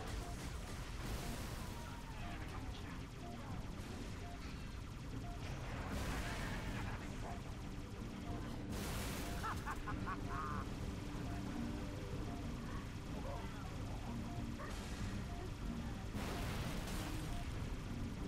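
Explosions burst now and then.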